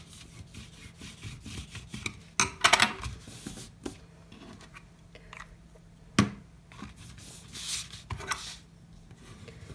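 A bone folder scrapes along a paper crease.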